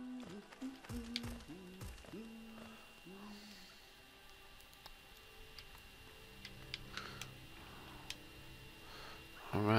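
Slow, eerie music plays softly.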